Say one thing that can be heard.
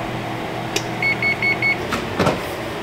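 An oven beeps several times.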